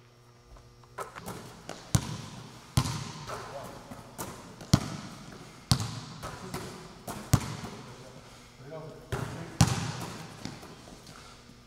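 Basketballs bounce on a hard court in a large echoing hall.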